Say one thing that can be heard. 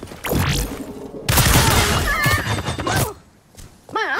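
A smoke grenade bursts with a loud whoosh.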